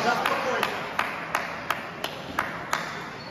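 A ping-pong ball bounces steadily several times in a large echoing hall.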